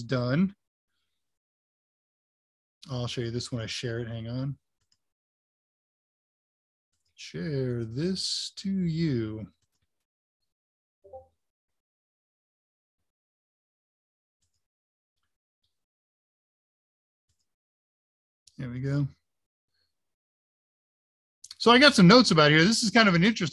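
An older man speaks calmly in short bursts over an online call.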